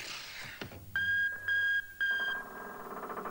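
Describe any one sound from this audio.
An alarm beeps in short, steady bursts.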